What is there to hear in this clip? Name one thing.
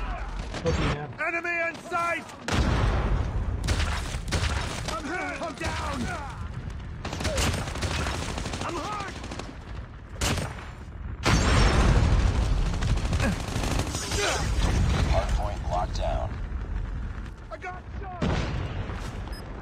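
Gunfire rattles in bursts from a game.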